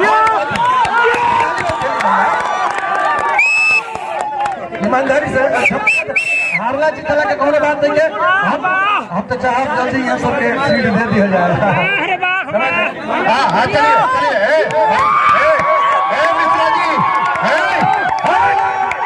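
A crowd of men chants and cheers loudly outdoors.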